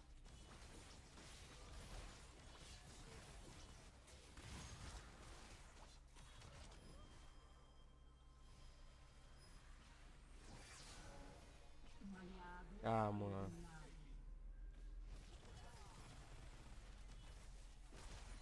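Game spell effects crackle and burst during a fight.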